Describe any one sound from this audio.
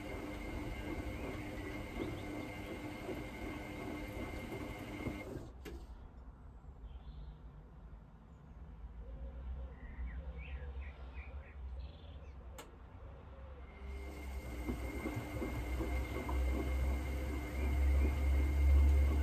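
Water and laundry slosh and churn inside a turning washing machine drum.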